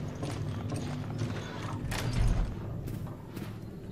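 A heavy door creaks open.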